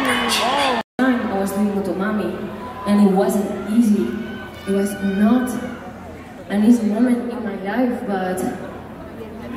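A young woman sings slowly through a microphone over loudspeakers.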